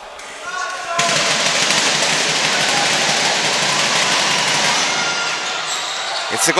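A crowd cheers loudly in an echoing gym.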